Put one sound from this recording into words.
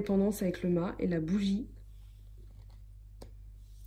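A card is laid softly onto a table.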